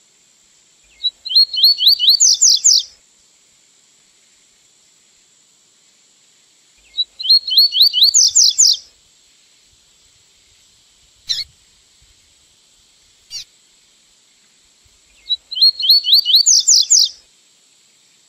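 A small songbird sings a quick, bright trilled phrase, repeated after pauses.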